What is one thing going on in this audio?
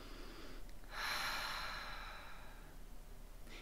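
A young woman breathes out slowly and deeply.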